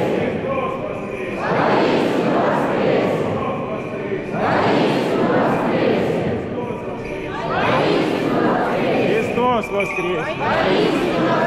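A man calls out loudly in a large echoing hall.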